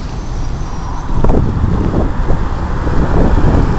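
Traffic passes by nearby.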